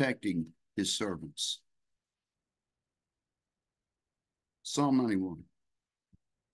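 A middle-aged man speaks calmly into a microphone, heard over an online call.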